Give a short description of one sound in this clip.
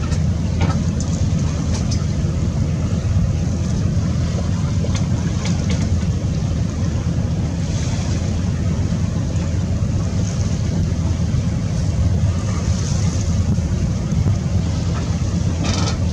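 Choppy sea water laps and splashes.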